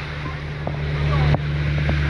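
A truck splashes through deep floodwater.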